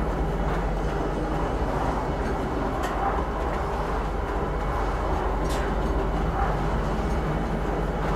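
A lift hums low and steadily as it moves.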